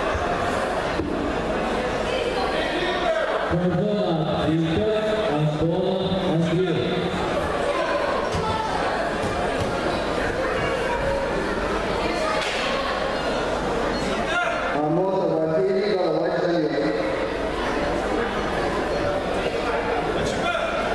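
A crowd of spectators murmurs and chatters in a large echoing hall.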